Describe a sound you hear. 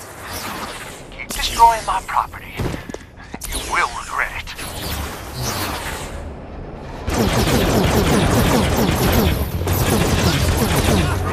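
Magical energy blasts whoosh and crackle.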